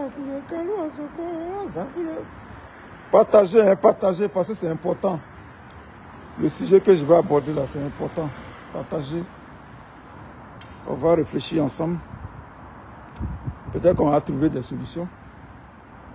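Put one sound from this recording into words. A middle-aged man speaks calmly in short phrases, close to a phone microphone.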